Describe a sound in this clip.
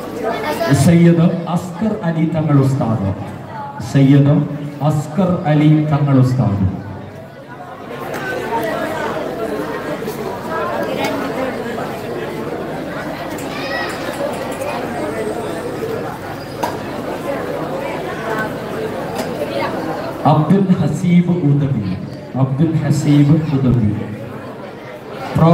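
A man chants loudly through a loudspeaker.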